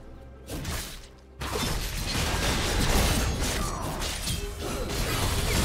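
Video game spell effects whoosh and crash during a fight.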